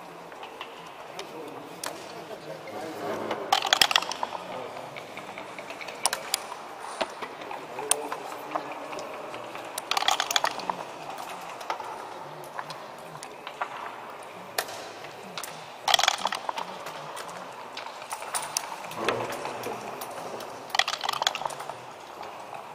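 Game pieces click and clack against a wooden board.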